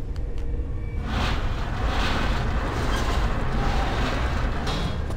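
A heavy wooden crate scrapes across a stone floor.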